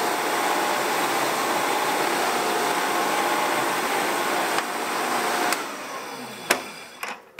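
A drill press whirs steadily, then winds down.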